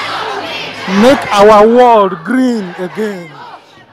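A young woman shouts loudly up close.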